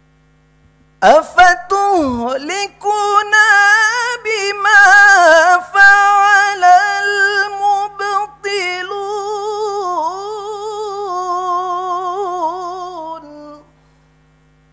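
A young man chants a melodic recitation into a microphone, his voice rising and falling in long held notes.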